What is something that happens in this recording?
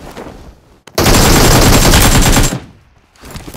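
Rapid gunfire rings out loudly.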